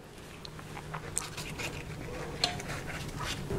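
A spoon clinks against a glass cup while stirring.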